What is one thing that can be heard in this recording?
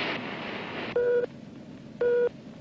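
A radar set beeps twice.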